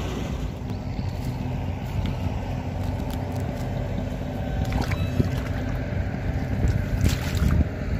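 Boots squelch and splash in wet mud.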